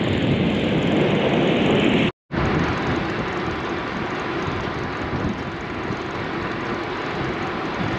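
Wind rushes past a moving car.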